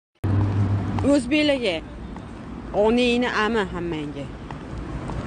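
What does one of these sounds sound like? A young woman speaks with animation close to a phone microphone.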